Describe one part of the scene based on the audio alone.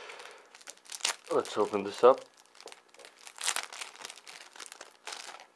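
Paper rustles and crinkles as hands handle it close by.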